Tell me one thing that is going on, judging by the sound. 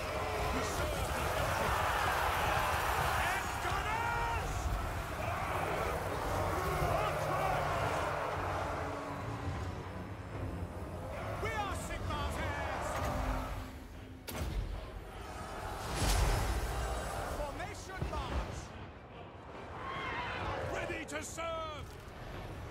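A battle roars with clashing and explosions.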